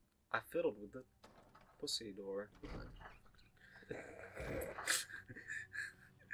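A heavy wooden door creaks slowly open.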